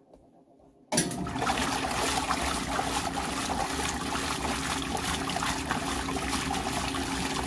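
Water churns and splashes loudly in a washing machine tub.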